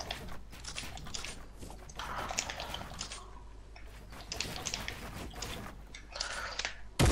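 Wooden building pieces snap into place in quick, repeated clatters.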